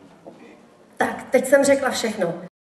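A young woman sings through a microphone in a large, echoing hall.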